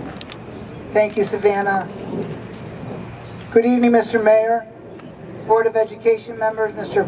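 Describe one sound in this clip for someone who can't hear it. A middle-aged man speaks slowly and formally into a microphone over a loudspeaker outdoors.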